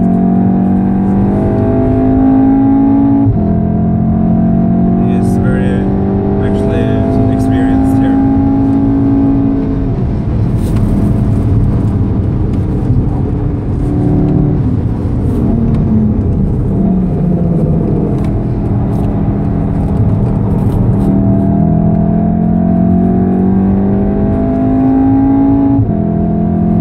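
Wind and tyres rush loudly past a fast-moving car.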